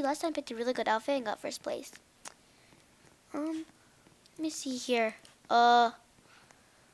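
A young girl talks with animation close to a microphone.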